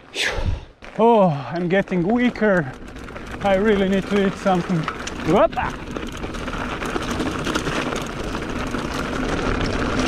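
Bicycle tyres crunch and rattle over a rough gravel trail.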